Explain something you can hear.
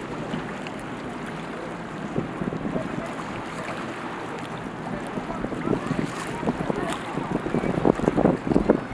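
Water splashes and churns against a boat's hull.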